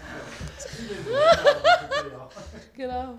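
A young woman laughs loudly and heartily.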